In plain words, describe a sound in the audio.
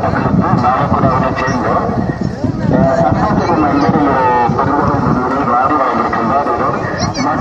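A crowd of men and women talk and call out together outdoors.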